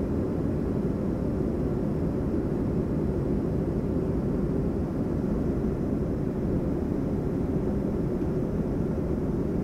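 A washing machine rumbles and hums steadily.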